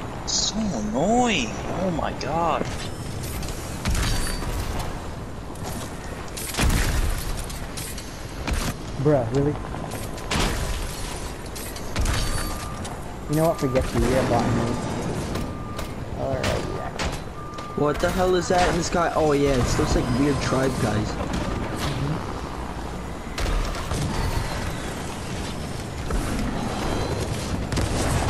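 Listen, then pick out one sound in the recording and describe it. A helicopter's rotor whirs.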